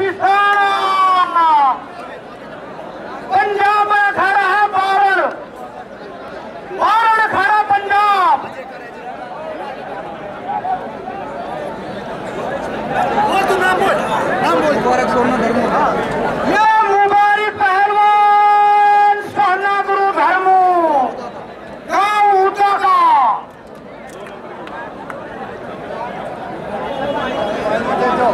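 A large outdoor crowd murmurs and cheers in the background.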